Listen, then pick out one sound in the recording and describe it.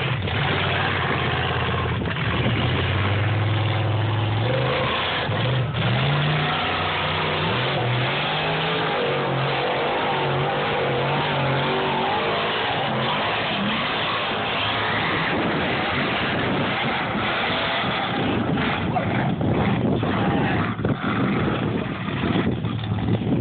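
A big truck engine roars and revs loudly nearby.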